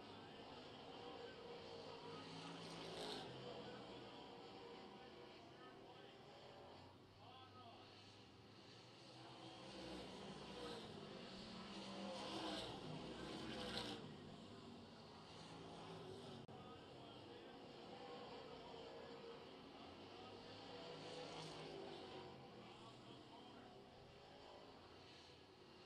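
Race car engines roar loudly around a dirt track outdoors.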